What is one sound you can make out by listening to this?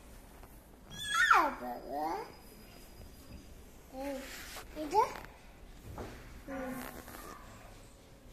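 A toddler babbles and squeals nearby.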